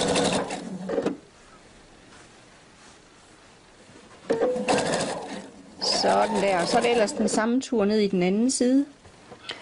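A sewing machine runs, stitching through fabric.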